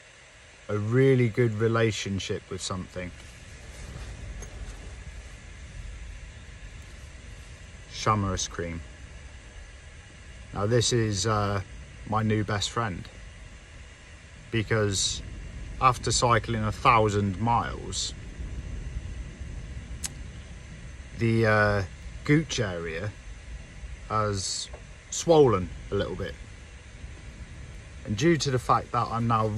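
A man talks calmly and close up, in short bursts with pauses.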